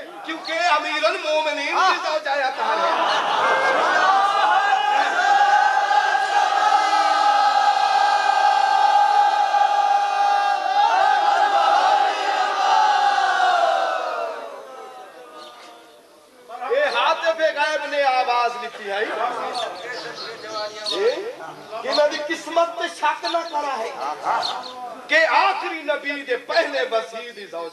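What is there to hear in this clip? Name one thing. A man speaks with passion through a loudspeaker.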